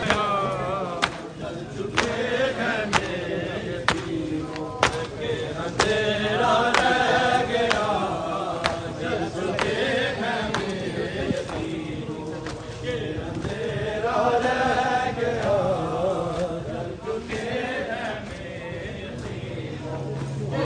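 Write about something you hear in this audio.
A crowd of men chants together loudly outdoors.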